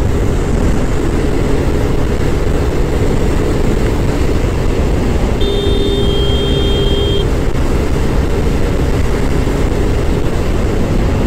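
A scooter engine hums steadily at speed.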